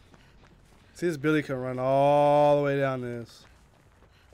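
A man calls out in a loud, drawn-out voice close to a microphone.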